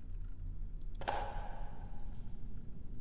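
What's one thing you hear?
A metal lid clinks as it lifts off a small metal canister.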